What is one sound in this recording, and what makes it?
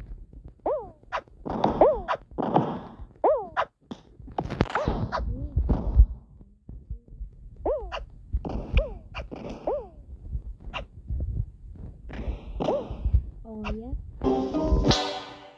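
Springy cartoon boing effects sound again and again as a game character jumps.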